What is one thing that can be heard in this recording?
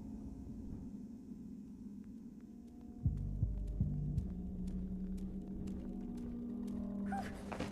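Light footsteps tap steadily on a hard floor.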